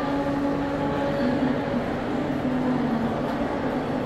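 A distant crowd murmurs in a large echoing hall.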